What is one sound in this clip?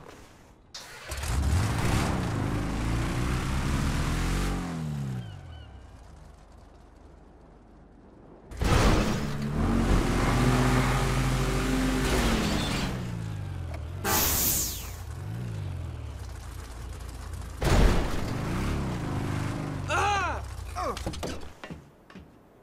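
A truck engine revs loudly, its pitch rising and falling.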